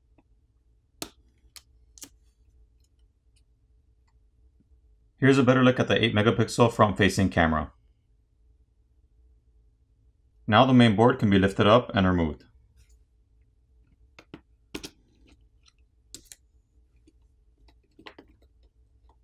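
A plastic prying tool clicks and snaps against a phone's parts.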